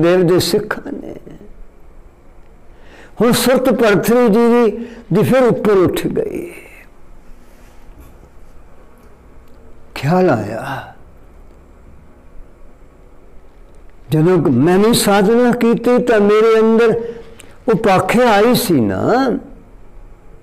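An elderly man chants in a slow, drawn-out voice, close to a microphone, with pauses between phrases.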